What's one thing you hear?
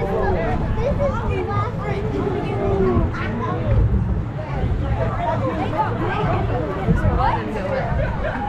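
Several people chatter close by.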